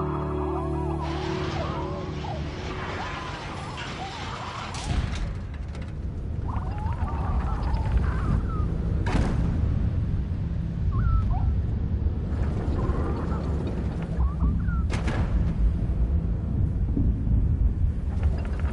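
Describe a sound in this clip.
Wind rushes and roars steadily.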